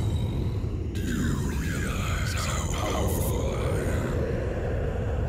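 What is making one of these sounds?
A monstrous, deep voice speaks slowly and menacingly.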